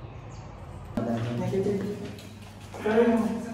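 A young man speaks close by with animation.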